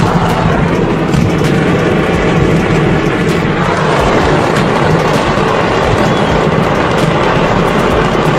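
A loud rumble of explosions rolls on steadily.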